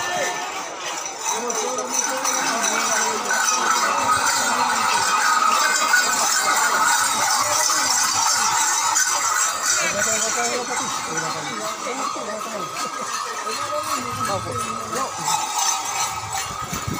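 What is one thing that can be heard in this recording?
A crowd of men chants and sings outdoors.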